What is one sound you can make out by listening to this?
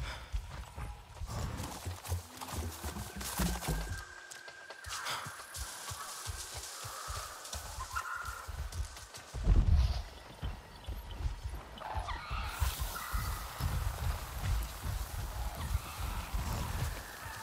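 Footsteps rustle and thud through grass and ferns.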